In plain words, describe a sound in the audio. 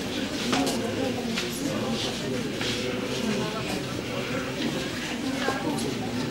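A man and a woman speak quietly.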